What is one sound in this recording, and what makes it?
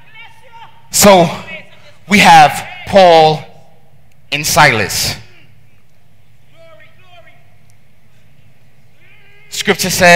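A man preaches loudly and passionately through a headset microphone, with long pauses, in a large echoing hall.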